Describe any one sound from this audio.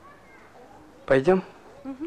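An elderly man speaks quietly.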